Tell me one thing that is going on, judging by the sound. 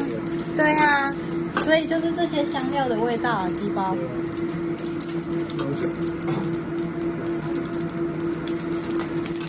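Spices sizzle and crackle in a hot pan.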